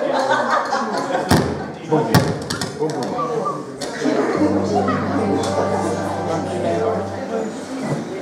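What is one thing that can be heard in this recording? An electric guitar plays.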